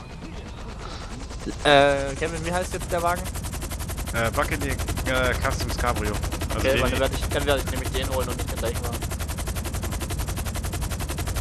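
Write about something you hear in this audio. Helicopter rotors spin up and thump rapidly as the helicopter lifts off.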